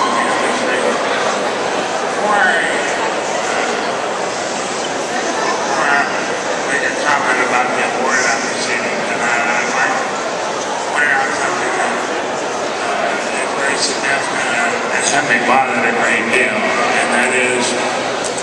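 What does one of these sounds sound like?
A crowd murmurs and chatters nearby.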